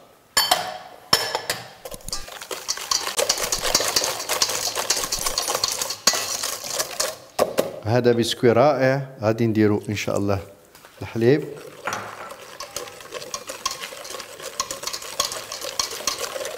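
A wire whisk rattles and scrapes quickly against a metal bowl.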